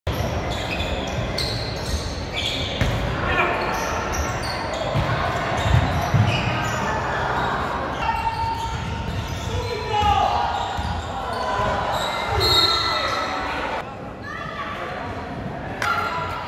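Players and spectators call out in a large echoing hall.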